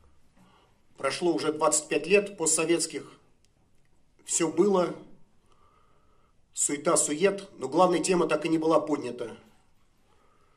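A middle-aged man speaks calmly into a microphone in a room with a slight echo.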